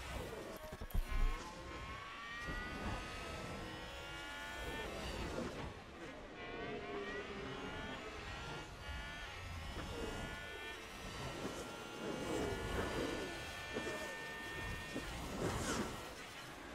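A racing car engine whines loudly, rising and falling in pitch as it shifts gears.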